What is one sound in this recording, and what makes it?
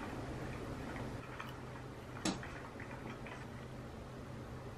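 A metal spoon scrapes and clinks against a ceramic bowl.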